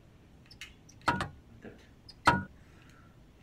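A lever clunks as it is pulled.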